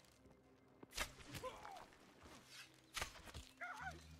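A bowstring twangs sharply as an arrow is shot.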